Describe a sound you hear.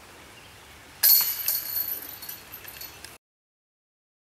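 A disc crashes into metal chains, which rattle and jingle.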